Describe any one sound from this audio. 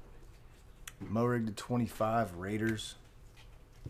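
A man speaks briefly and calmly into a microphone.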